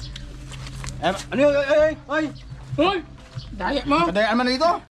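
A man talks loudly and with animation close by.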